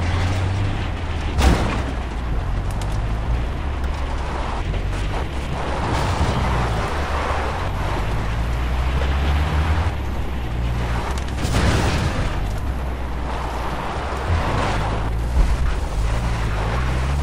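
A car engine rumbles steadily while driving.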